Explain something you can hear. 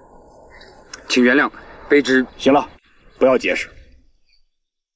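An older man speaks sternly, close by.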